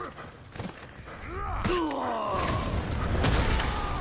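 Swords clash and strike in a melee fight.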